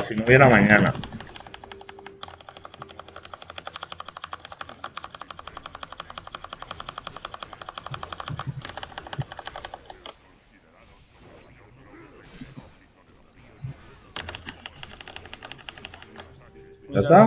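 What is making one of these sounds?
Weapons strike and spells burst in rapid, rhythmic succession.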